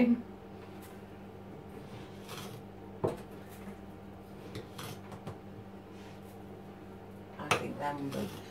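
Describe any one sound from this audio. A spoon clinks against a cup while stirring.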